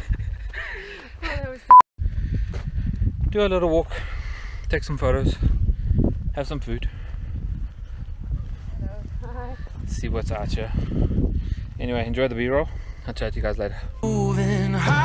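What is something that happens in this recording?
A man talks calmly and close by, outdoors in wind.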